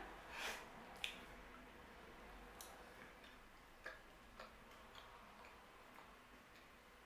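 A young woman chews food with soft crunches.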